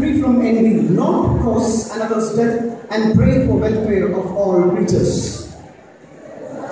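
A man speaks loudly through a loudspeaker in an echoing hall.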